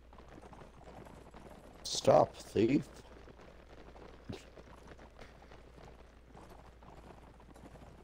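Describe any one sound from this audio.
Horses gallop over grass.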